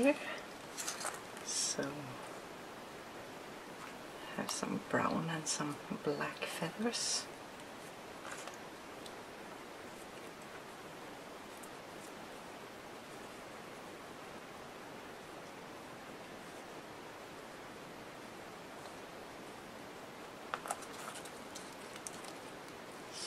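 Feathers rustle softly between fingers.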